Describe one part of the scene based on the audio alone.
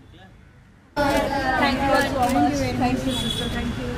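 An elderly woman speaks with animation nearby.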